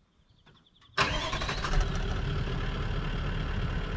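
A turbo-diesel V8 ute idles outdoors.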